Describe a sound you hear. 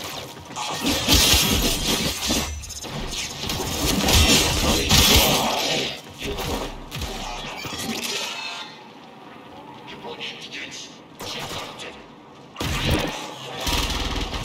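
Heavy impacts thud and crash.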